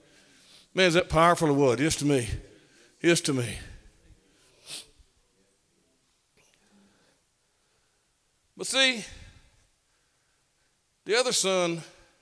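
An older man speaks through a microphone in short bursts with pauses.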